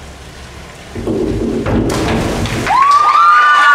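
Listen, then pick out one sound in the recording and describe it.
A diver splashes into the water in a large echoing hall.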